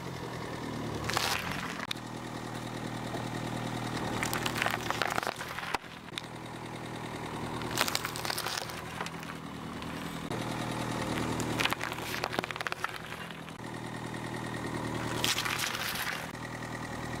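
A car tyre rolls over vegetables and crushes them with a wet crunch.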